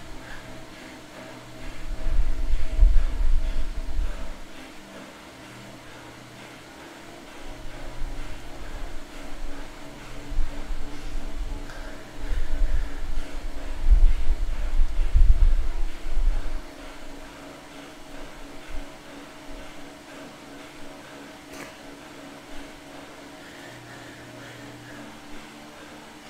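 An indoor bike trainer hums steadily close by.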